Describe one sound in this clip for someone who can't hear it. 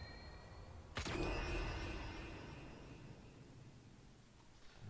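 A heavy impact booms and slowly rumbles away.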